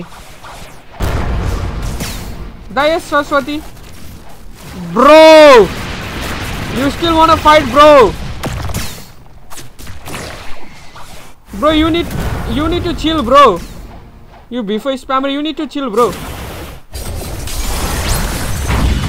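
Magical energy blasts whoosh and rumble in bursts.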